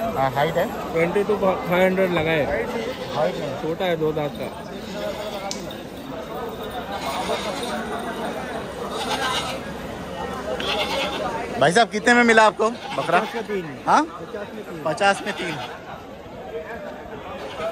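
A crowd of men chatters in the background.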